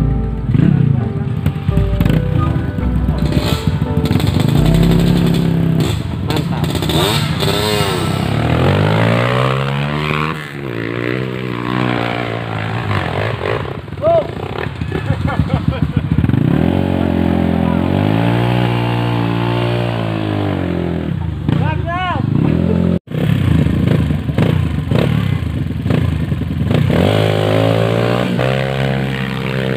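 Dirt bike engines rev loudly, rising and falling in pitch.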